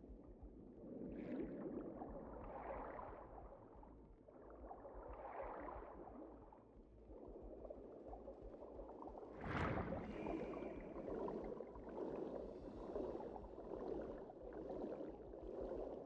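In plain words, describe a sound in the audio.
A game character glides along with a soft, swelling rushing whoosh.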